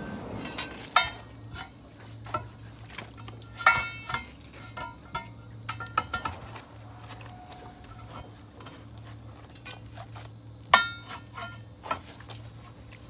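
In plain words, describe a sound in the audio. A metal bar clanks and rings against a wheel rim.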